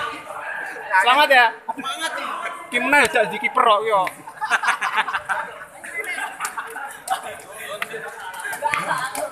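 A crowd of young people chatters in the background.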